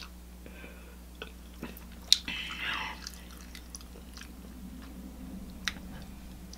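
A woman chews food close to a microphone with soft wet smacking sounds.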